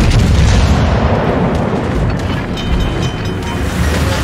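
Heavy naval guns boom and rumble, then slowly fade.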